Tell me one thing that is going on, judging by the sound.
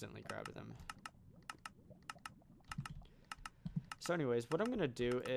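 Light clicks tick in quick succession.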